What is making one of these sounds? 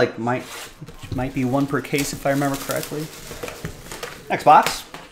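Plastic wrap crinkles as hands tear it off a box.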